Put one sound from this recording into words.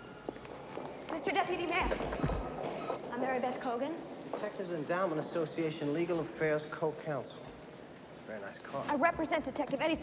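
A woman talks with animation as she walks.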